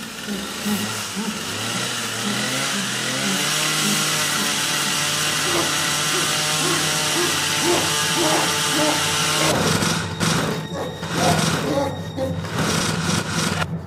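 A gagged man groans and whimpers in pain.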